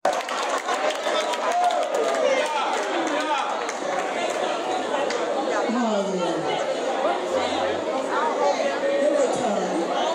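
A crowd of adults chatters and calls out loudly in a large echoing hall.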